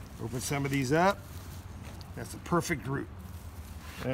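Hands rustle and crumble loose soil.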